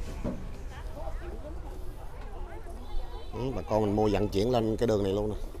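Several people chatter in the background outdoors.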